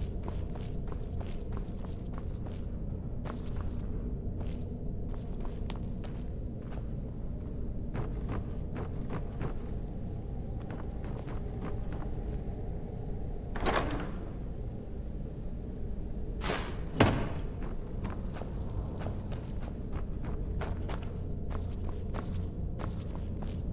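Footsteps walk steadily across a stone floor.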